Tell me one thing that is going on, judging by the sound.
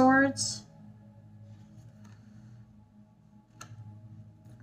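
A playing card is laid down on a table with a soft tap.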